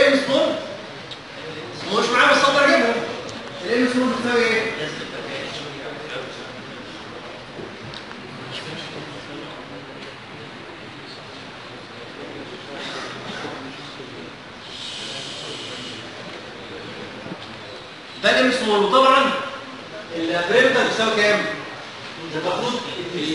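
A man speaks with animation to a room, close by with a slight echo.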